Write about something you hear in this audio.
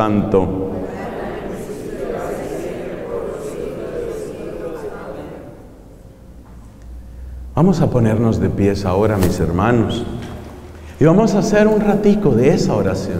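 A man speaks with animation through a microphone and loudspeakers in an echoing hall.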